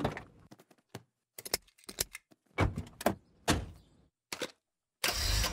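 A seat belt buckle clicks shut.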